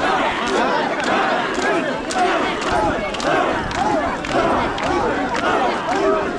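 A large crowd of men chants loudly and rhythmically outdoors.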